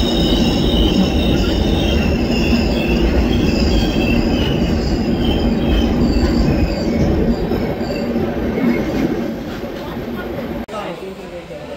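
A train rumbles along the tracks at speed.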